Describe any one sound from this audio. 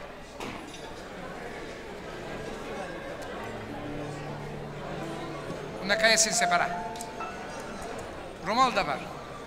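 A crowd chatters and murmurs.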